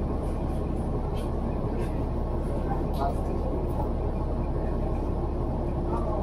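Traffic rumbles past on a street outdoors.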